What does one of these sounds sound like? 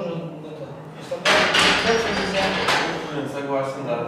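A barbell clanks onto its rack.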